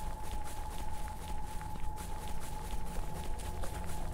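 Leaves and grass rustle as someone pushes through brush.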